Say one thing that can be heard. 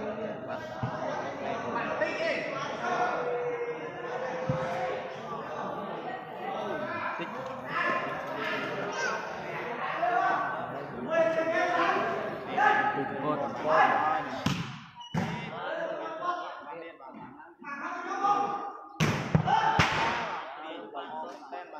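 A large crowd chatters and shouts in a big echoing hall.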